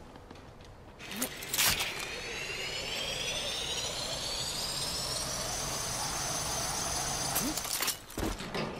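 A pulley whirs along a zip line with a rising whine, then stops.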